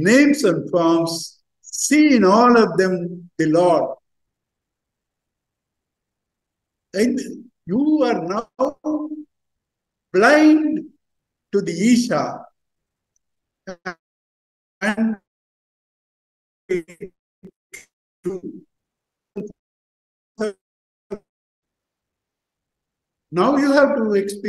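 An elderly man speaks with animation through an online call, pausing often.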